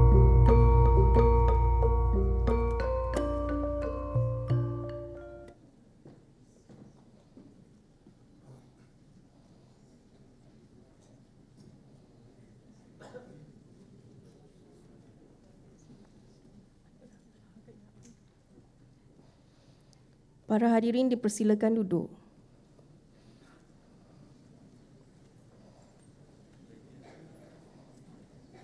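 A crowd of men and women murmurs quietly in the background.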